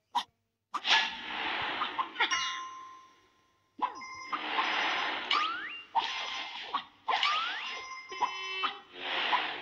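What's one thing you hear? Whooshing game sounds rush past in bursts.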